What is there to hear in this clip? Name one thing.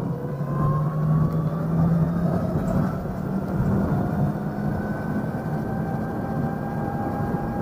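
Wind rushes past the rider outdoors.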